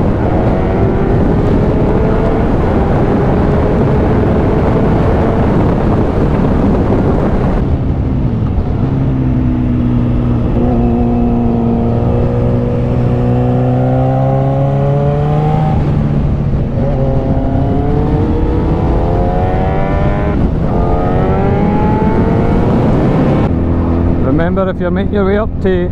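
A motorcycle engine roars and revs up and down as it rides along.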